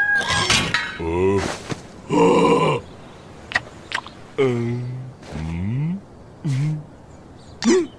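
A small cartoon creature babbles in a squeaky high voice.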